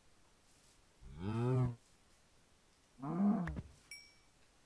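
A cow moos loudly, twice.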